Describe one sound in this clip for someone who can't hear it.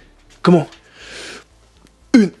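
A man breathes out hard between efforts.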